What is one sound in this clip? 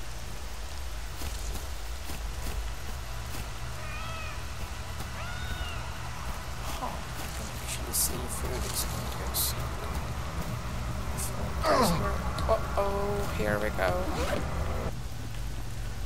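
Footsteps crunch softly through grass and dirt.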